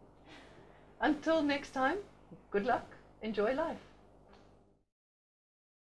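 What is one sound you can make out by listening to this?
A middle-aged woman speaks warmly close to a microphone.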